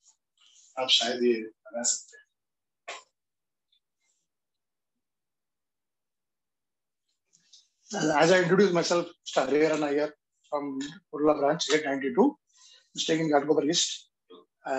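Middle-aged men talk calmly nearby.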